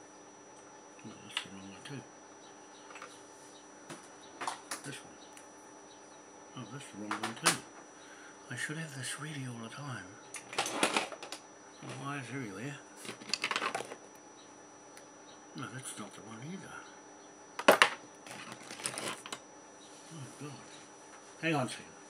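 An adult man talks calmly close by, in short bursts.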